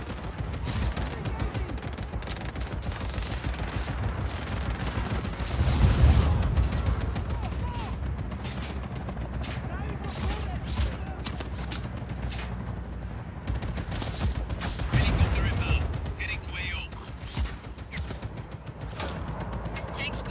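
A grappling line zips through the air.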